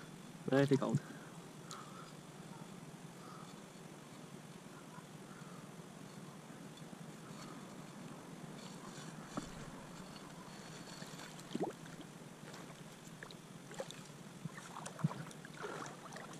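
A stream of water flows and splashes steadily.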